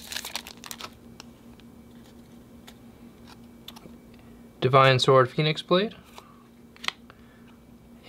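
Trading cards slide and tap against each other.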